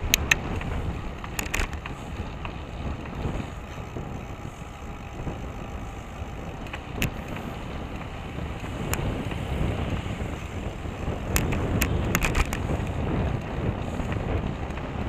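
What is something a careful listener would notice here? Wind buffets a microphone outdoors with a steady low rumble.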